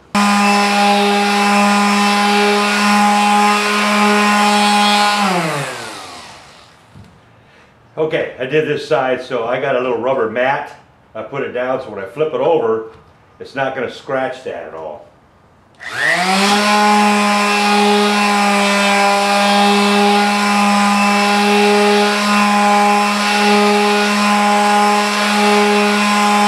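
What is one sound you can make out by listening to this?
An electric sander buzzes steadily, winds down and later starts up again.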